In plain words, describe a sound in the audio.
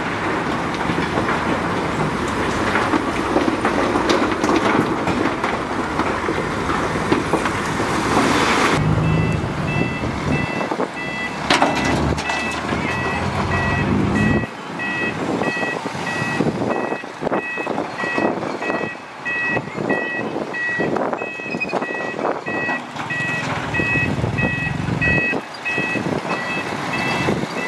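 Rocks scrape and grind as a bulldozer blade pushes them.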